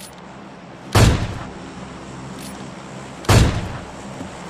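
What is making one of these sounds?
Gunshots crack sharply.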